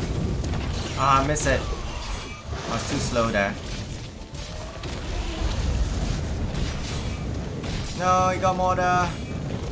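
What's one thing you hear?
A huge beast lets out loud, shrieking roars.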